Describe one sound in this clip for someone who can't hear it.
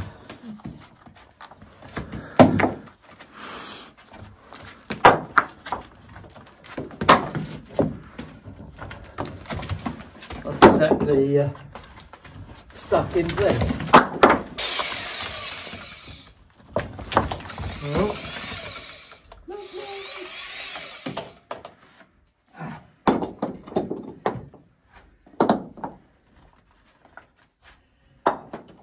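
Stones knock and clatter as a man pries them loose from a wall.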